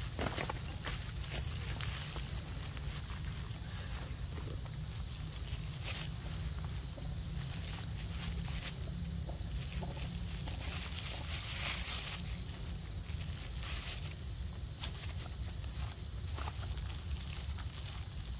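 Monkeys chew and smack on fruit close by.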